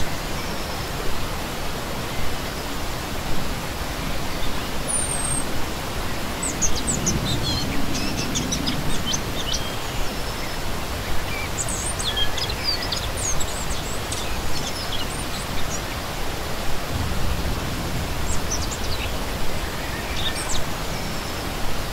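A shallow stream rushes and gurgles steadily over rocks.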